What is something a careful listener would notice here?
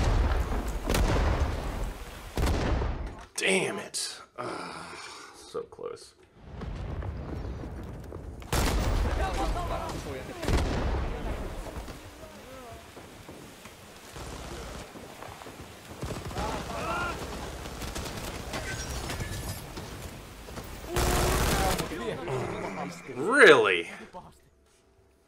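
Gunshots crack in bursts.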